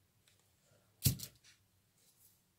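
A glue gun is set down with a sharp knock.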